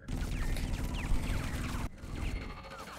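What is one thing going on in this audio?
A loud blast rumbles with crackling debris.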